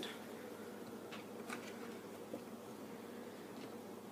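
Paper cards slide and rustle on a table.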